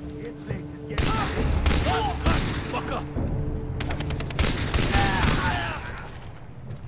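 A pistol fires several shots in quick bursts.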